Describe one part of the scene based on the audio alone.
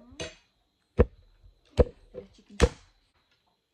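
Hands clap sharply a few times.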